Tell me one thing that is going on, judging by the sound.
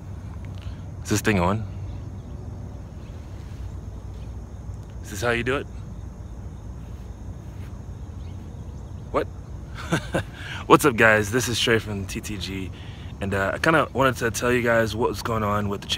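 A man talks calmly and close up, outdoors.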